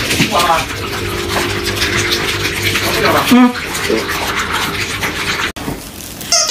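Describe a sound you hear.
Puppies crunch and lap food from bowls.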